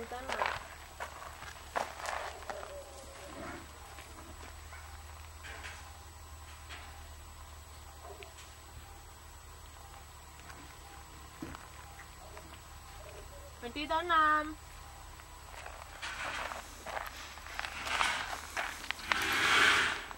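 Gravel crunches as a cat rolls on the ground.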